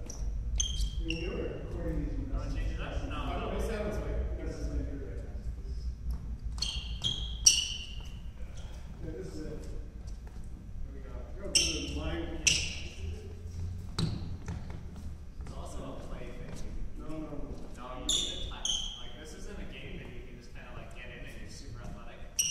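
Sneakers squeak sharply on a wooden floor.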